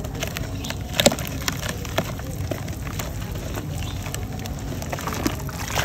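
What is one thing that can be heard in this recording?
Crumbled pieces splash and plop into water.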